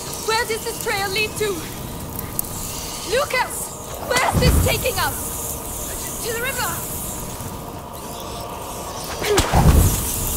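A fire crackles nearby.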